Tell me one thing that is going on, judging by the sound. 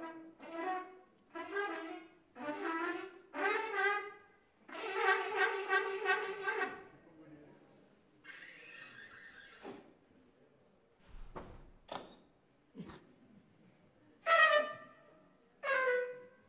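A horn plays short, bright phrases.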